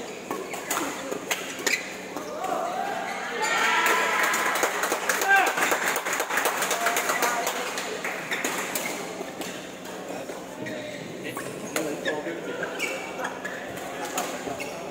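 Shuttlecocks are struck with sharp pops of rackets.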